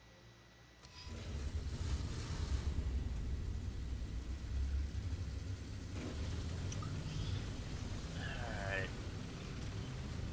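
A tank engine rumbles and roars steadily.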